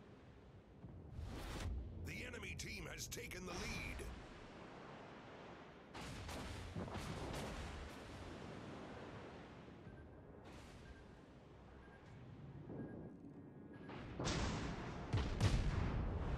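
Naval guns fire with deep booms.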